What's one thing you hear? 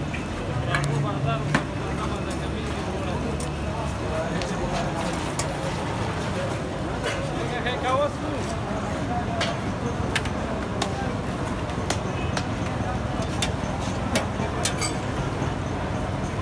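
A metal spatula scrapes and taps on a hot griddle.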